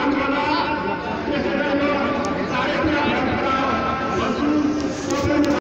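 A large crowd of men chants and shouts loudly outdoors, close by.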